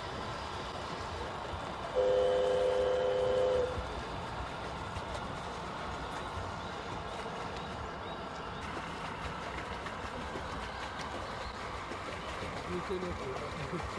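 A radio-controlled model boat cuts through choppy water.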